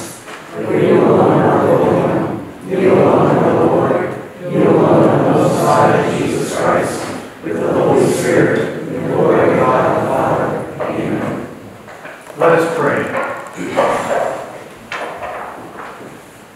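A middle-aged man speaks calmly in a softly echoing hall.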